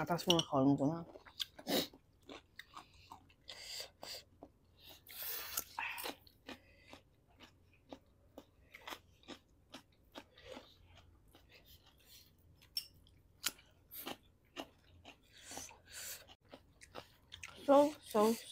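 Chewing and slurping of food sound close to a microphone.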